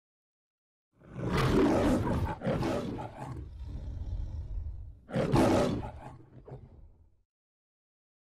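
A lion roars loudly, twice, with a deep rumbling growl.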